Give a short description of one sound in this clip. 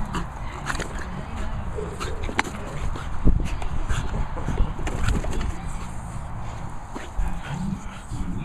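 A small dog snorts and grunts while playing.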